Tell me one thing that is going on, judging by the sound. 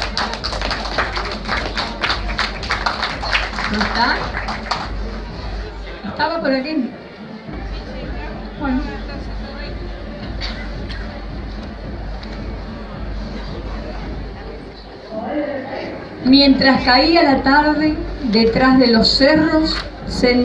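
A man speaks into a microphone over loudspeakers in a large echoing room.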